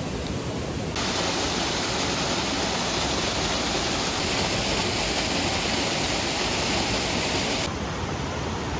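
A waterfall rushes and splashes loudly close by.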